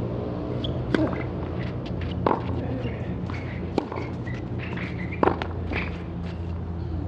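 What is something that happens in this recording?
Tennis rackets strike a ball with sharp pops during a rally.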